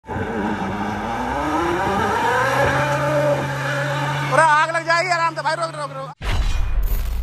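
An SUV engine revs hard and rises in pitch.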